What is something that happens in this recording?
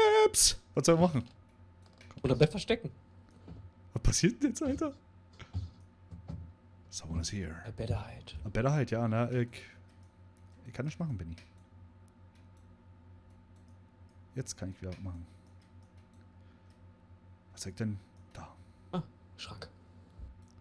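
Adult men talk with animation into close microphones.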